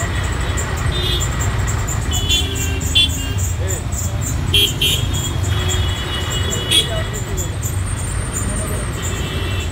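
Motorcycle engines rumble close by in slow traffic.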